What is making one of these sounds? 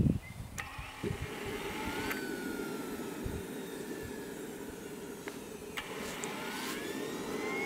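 A small model helicopter engine idles with a steady buzzing drone.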